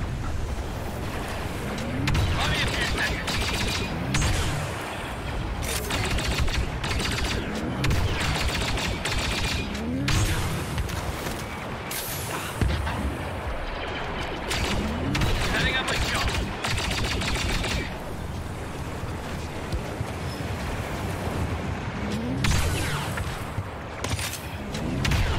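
Explosions rumble far off.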